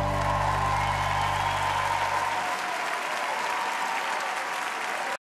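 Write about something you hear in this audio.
A saxophone plays a long, held note.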